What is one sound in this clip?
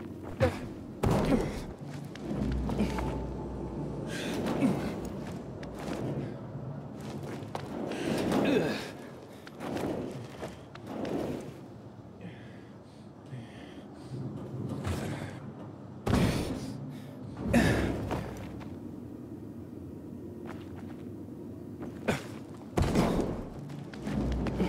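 Hands and boots clank on metal ladder rungs in a hollow, echoing shaft.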